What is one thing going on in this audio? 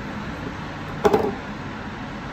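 A battery is set down on a table with a knock.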